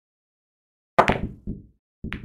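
A cue strikes a billiard ball with a sharp crack.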